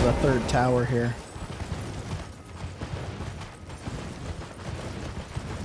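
Horse hooves gallop over the ground.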